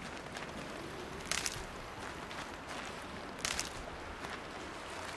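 Leaves and grass rustle as someone creeps through thick undergrowth.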